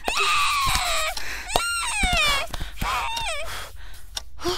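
A young girl wails and cries loudly, close by.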